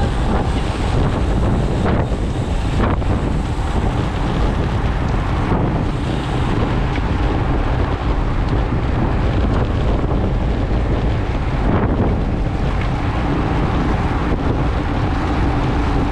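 Bicycle tyres hum on a rough road.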